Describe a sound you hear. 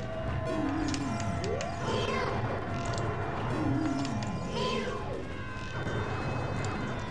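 Video game music plays steadily throughout.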